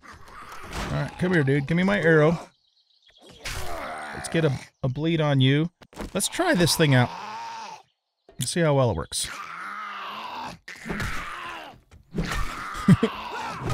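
A zombie growls.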